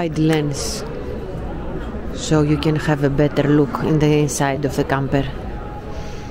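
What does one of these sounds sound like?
A woman speaks with animation close by.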